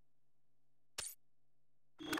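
A short electronic click sounds as a menu option is chosen.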